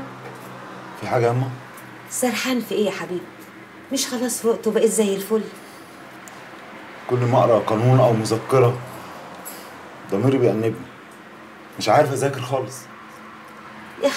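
An elderly woman speaks close by in a pleading, tearful voice.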